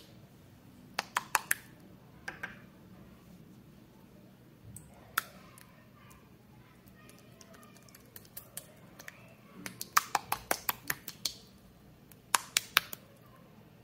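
Slime squelches and pops as hands squeeze it.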